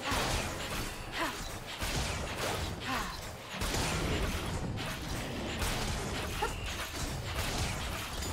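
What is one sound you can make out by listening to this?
Magic spells whoosh and crackle in a game fight.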